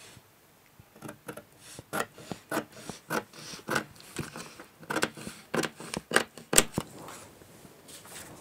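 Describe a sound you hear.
Scissors snip through stiff paper in short, repeated cuts.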